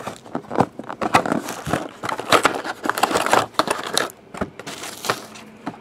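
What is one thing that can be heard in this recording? A cardboard box scrapes and knocks as hands handle it.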